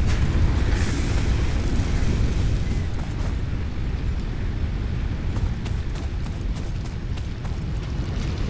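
Wind rumbles steadily across open ground.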